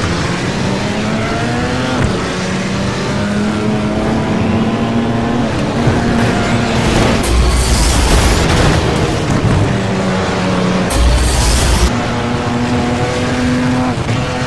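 Tyres skid and screech on snow.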